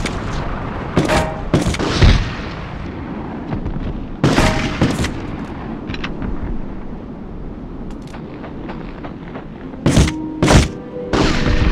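Pistol shots ring out several times, echoing in a stone space.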